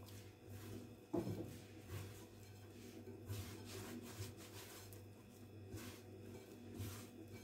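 Hands knead soft dough in a glass bowl with soft squishing and thumping sounds.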